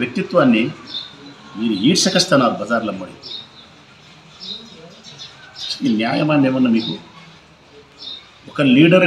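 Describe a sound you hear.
A middle-aged man speaks calmly and steadily into a close microphone, with pauses.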